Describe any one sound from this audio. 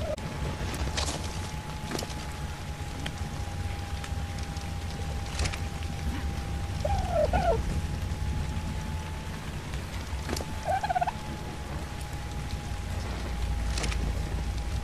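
Soft clicks sound now and then.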